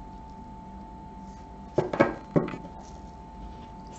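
A card is laid down on a table with a soft tap.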